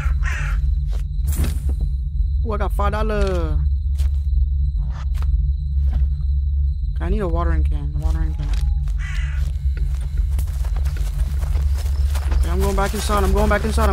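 Footsteps tread on grass and gravel.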